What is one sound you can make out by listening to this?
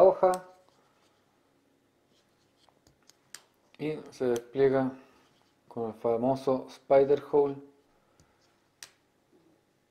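A folding knife blade clicks open and shut.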